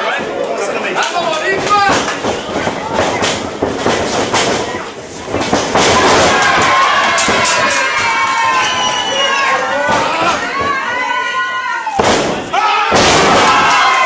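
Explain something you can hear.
Bodies slam onto a wrestling mat with loud thuds.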